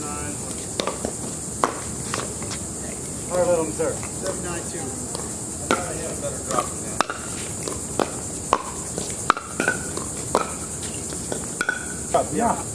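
Paddles strike a plastic ball with sharp pops, back and forth.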